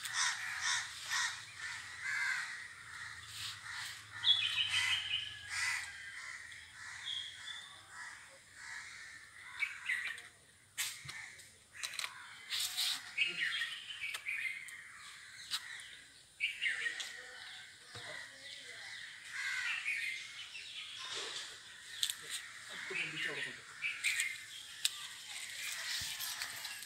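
A plastic bottle crinkles and taps.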